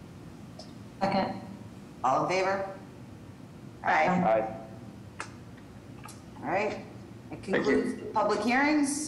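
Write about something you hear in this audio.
A woman speaks calmly over an online call, in short phrases.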